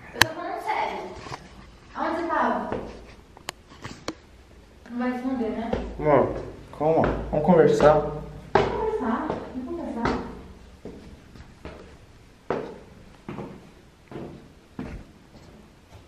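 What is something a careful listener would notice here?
Footsteps climb a flight of stairs.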